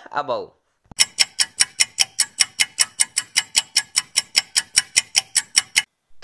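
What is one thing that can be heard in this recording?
A timer ticks quickly and steadily.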